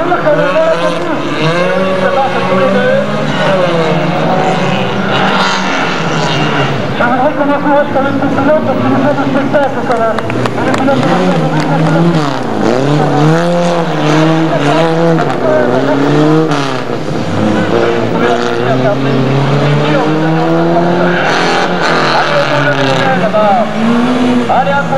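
A rally car engine revs hard and roars past up close.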